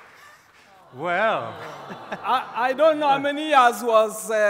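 An elderly man laughs loudly.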